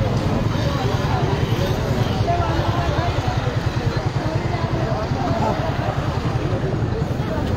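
A crowd of men and women chatter loudly outdoors.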